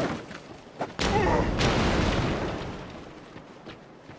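A warrior rolls heavily across the ground with a clatter of armour.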